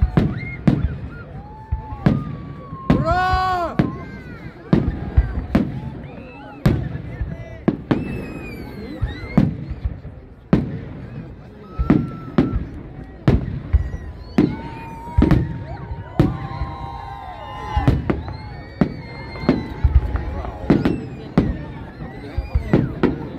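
Fireworks whistle and crackle as they rise.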